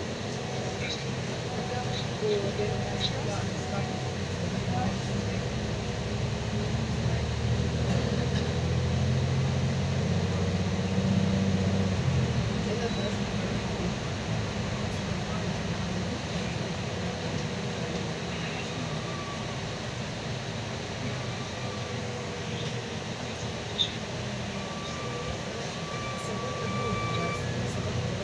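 A bus engine hums and rumbles steadily from inside.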